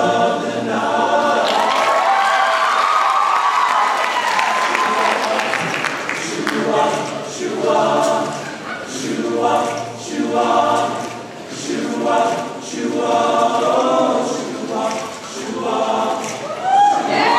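A large choir of young men sings together in a reverberant hall.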